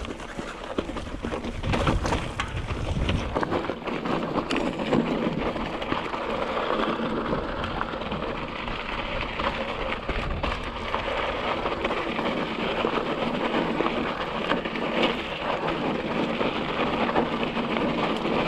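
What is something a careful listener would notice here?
Mountain bike tyres crunch and rattle over loose rocky ground.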